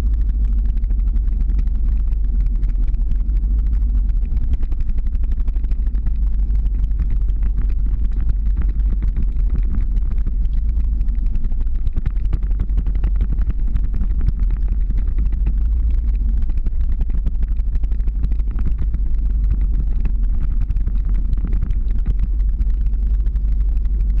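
Skateboard wheels rumble steadily on rough asphalt.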